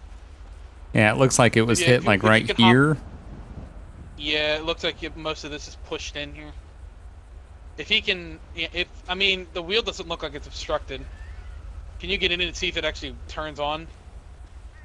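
A man talks through a microphone in a lively voice.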